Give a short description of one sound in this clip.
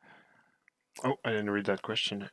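A man speaks animatedly close to a microphone.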